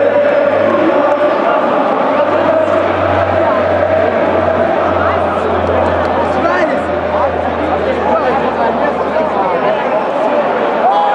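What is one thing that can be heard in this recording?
A crowd of fans chants and sings loudly across a large open stadium.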